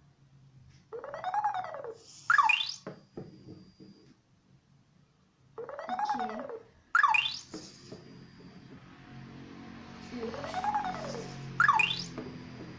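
A small toy robot plays rising and falling electronic chirps.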